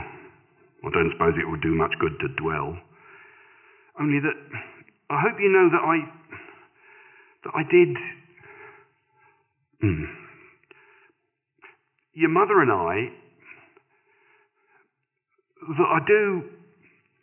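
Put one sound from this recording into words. A middle-aged man reads aloud expressively into a microphone, with short pauses.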